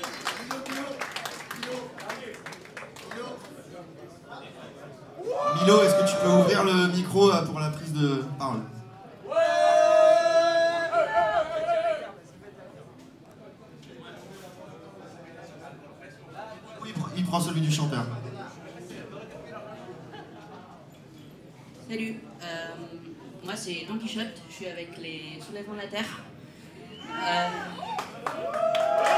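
A crowd of young people chatters.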